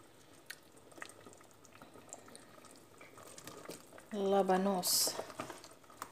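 Pieces of radish splash into a pot of water.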